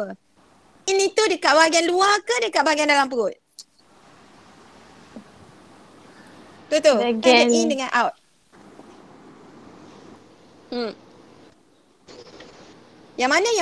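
A young woman speaks with animation over an online call, in bursts with pauses.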